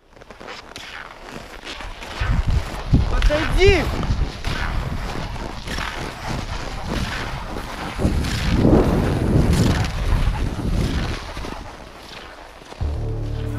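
Ski poles tap and crunch into the snow with each stride.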